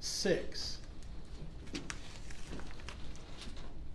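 Paper rustles as a man handles it.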